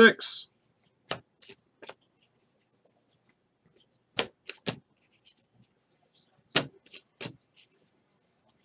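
A stack of trading cards is flipped through by hand, one card at a time.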